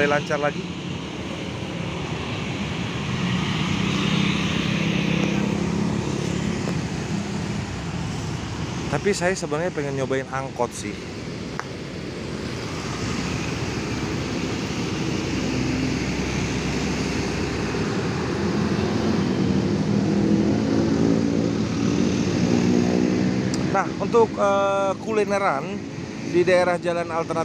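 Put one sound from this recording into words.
Motorcycle engines buzz as they pass close by.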